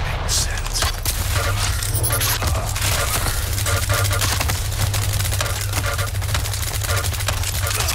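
An electric beam crackles and buzzes steadily.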